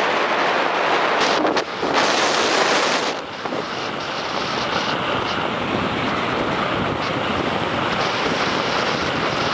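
Ice skates scrape and hiss over smooth ice.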